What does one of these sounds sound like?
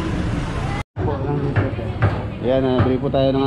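A cleaver chops on a wooden block.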